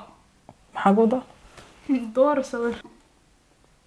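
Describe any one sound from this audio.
A young woman talks playfully up close.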